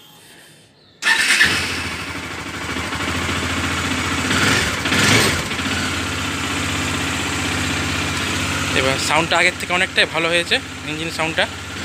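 A motorcycle engine starts with a roar and then idles steadily.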